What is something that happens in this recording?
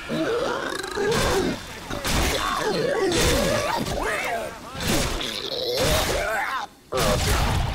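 Heavy blows land as a clawed creature strikes a man.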